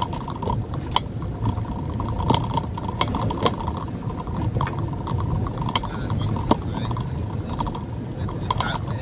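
Raindrops patter and tap on a car windshield.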